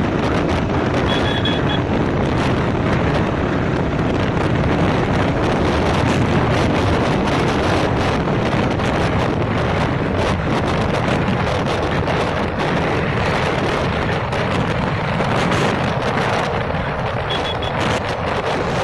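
Wind rushes loudly over a microphone while riding at speed outdoors.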